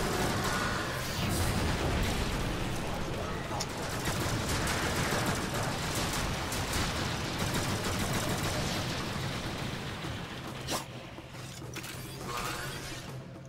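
Gunfire and blasts from a video game crackle and boom.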